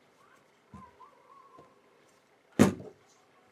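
A cloth rubs on a hard surface.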